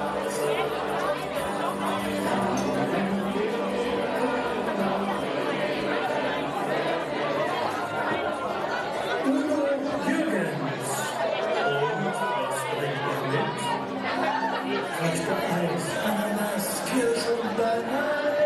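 A man sings a lead line with animation through a microphone.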